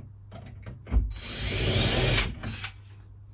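A power drill whirs briefly.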